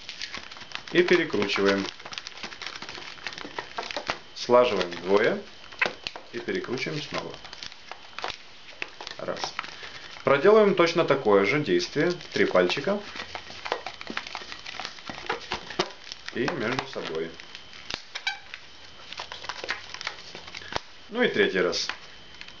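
Rubber balloons squeak and creak sharply as they are twisted.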